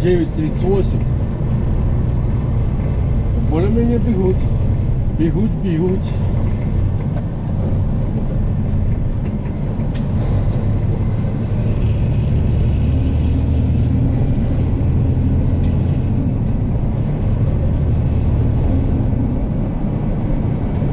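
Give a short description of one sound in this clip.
A truck's diesel engine drones steadily while driving.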